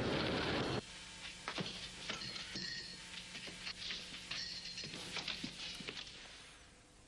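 Small objects clatter on a desk.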